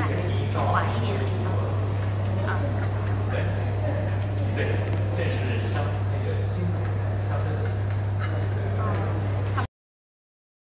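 A crowd of men and women murmur and chat nearby.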